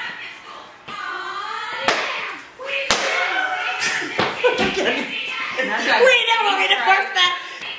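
Sneakers thump on a wooden floor as young women dance.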